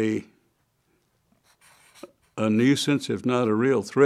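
A felt-tip marker squeaks and scratches on paper.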